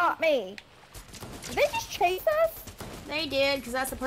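Gunshots fire in quick bursts from a video game.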